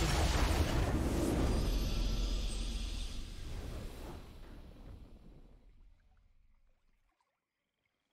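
A triumphant game fanfare swells and then fades out.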